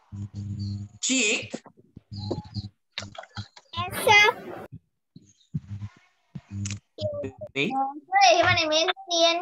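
A young girl answers over an online call.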